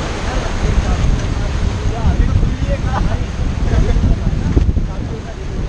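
River water rushes and splashes around a raft.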